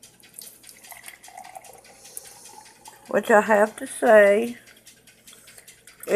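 Hot coffee pours into a cup.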